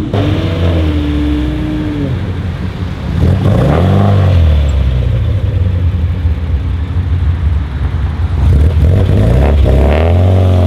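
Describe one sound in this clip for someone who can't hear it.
A car engine idles with a rough, low rumble.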